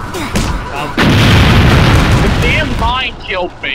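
An explosion booms and debris rumbles.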